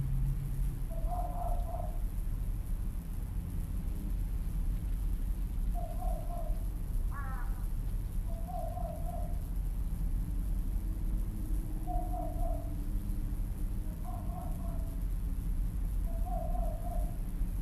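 Crows caw in the distance.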